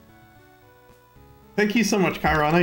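Chiptune game music plays.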